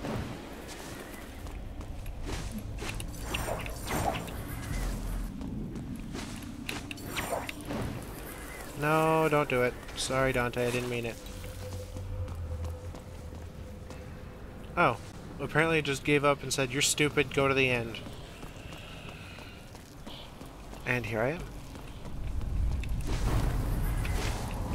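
A whip swishes through the air.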